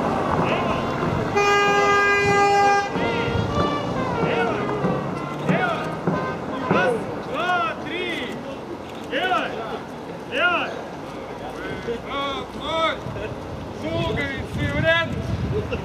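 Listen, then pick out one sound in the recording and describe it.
Footsteps of a group of people shuffle along a paved road outdoors.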